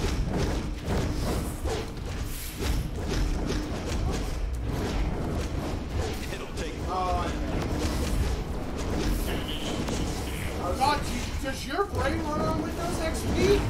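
Game weapons blast and clang in rapid bursts.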